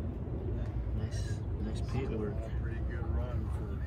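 A man talks casually nearby outdoors.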